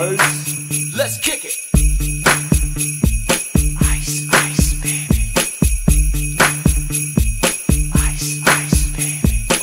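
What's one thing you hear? Loud upbeat music with a pounding beat plays.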